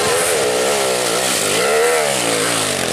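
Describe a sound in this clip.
Another dirt bike engine roars up a slope.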